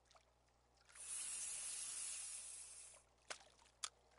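A fishing line whizzes out as a rod casts.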